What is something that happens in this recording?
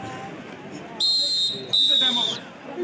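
A referee's whistle blows shrilly twice.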